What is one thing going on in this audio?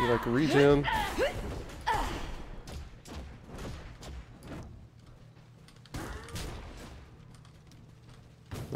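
Sharp whooshing blasts and hits of a fantasy battle sound in bursts.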